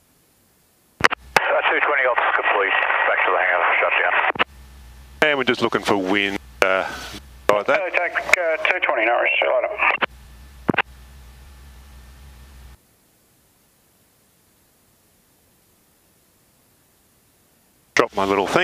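A man speaks calmly over a crackly aircraft radio.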